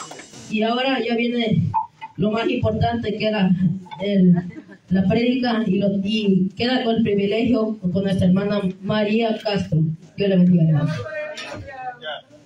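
A man speaks with fervour through a microphone and loudspeakers in an echoing hall.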